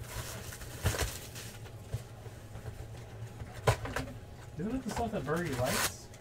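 Plastic wrapping crinkles as it is handled.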